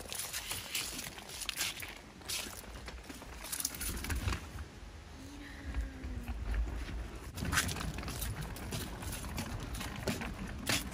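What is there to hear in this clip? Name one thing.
A stroller's wheels rumble and clack over wooden boards.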